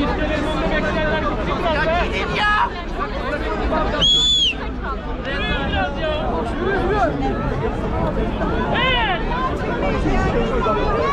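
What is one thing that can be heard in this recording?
A large crowd chatters and shouts loudly outdoors.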